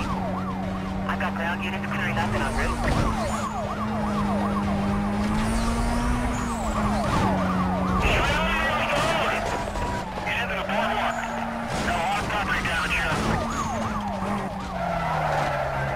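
Police sirens wail up and down close by.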